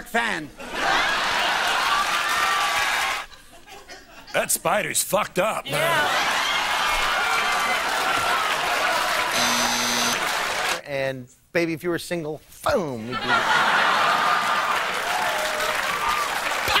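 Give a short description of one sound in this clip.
A studio audience laughs and cheers loudly.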